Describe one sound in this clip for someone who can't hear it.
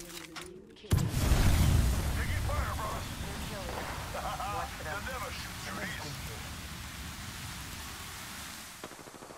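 Bullets strike metal.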